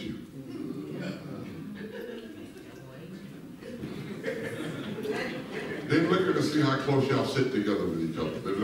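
A man speaks over a loudspeaker in a large echoing hall.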